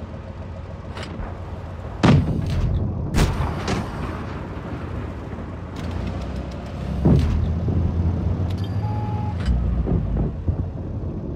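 Tank cannons fire with loud booming shots.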